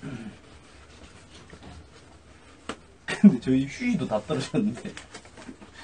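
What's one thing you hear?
Cloth rustles as a young man handles a towel.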